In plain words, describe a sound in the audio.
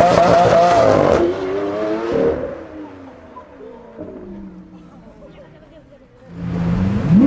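A Lamborghini Aventador V12 accelerates away and fades into the distance.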